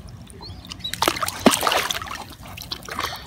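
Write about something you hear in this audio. Water churns and bubbles close by.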